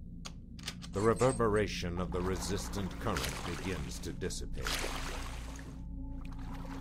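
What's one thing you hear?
Water rushes and splashes as a swimmer plunges in.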